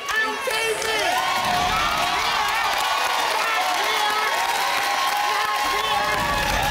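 A studio audience cheers and screams loudly.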